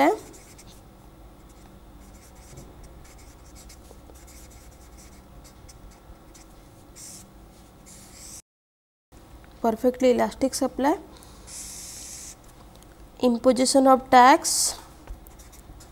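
A felt marker scratches and squeaks across paper.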